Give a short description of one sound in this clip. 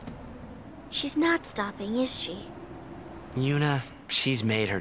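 A young woman speaks with animation.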